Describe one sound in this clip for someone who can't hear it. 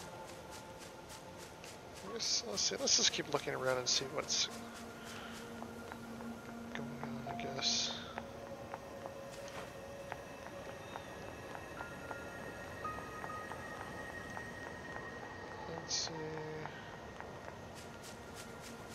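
Footsteps patter quickly on grass and pavement.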